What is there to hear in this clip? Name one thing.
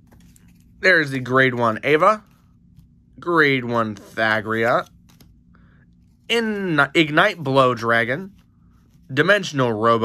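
Playing cards slide against each other in the hands.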